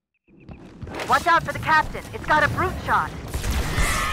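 Sci-fi energy weapons fire in quick, chirping bursts.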